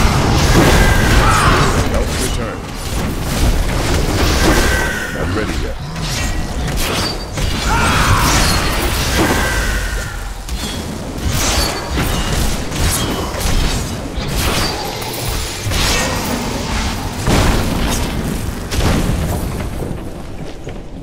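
Fiery blasts and explosions burst again and again.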